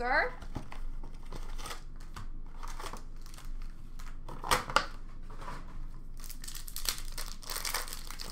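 Plastic card cases rattle and clack as hands handle them.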